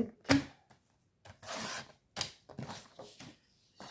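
A sliding paper trimmer blade cuts through paper.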